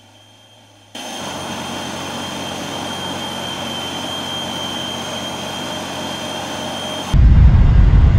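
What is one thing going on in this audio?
Jet engines whine steadily from close by outside.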